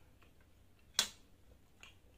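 Chopsticks clack down on a metal tray.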